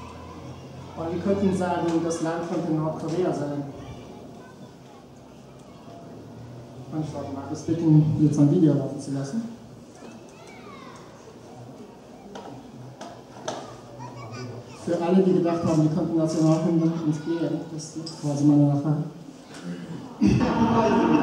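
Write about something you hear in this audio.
A man speaks into a microphone, heard through loudspeakers.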